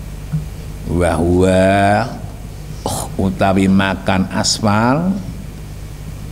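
An elderly man chants a recitation through a microphone, in short melodic phrases with pauses.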